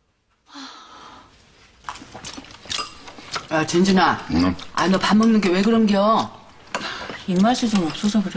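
Chopsticks and bowls clink lightly.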